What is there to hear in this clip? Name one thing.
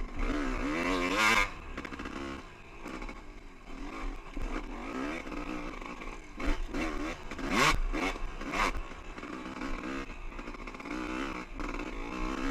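A dirt bike engine revs and whines up and down close by.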